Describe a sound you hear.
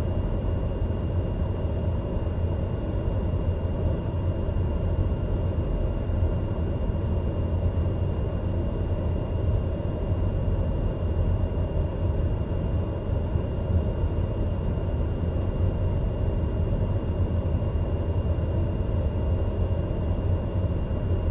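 A single-engine turboprop drones steadily while taxiing, heard from inside the cockpit.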